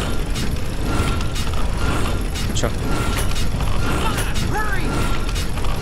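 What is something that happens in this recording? Metal gears clank into place.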